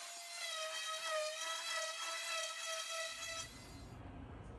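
An electric orbital sander whirs steadily on wood.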